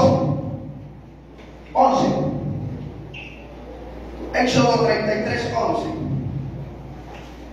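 A man preaches with animation through a loudspeaker in a large echoing hall.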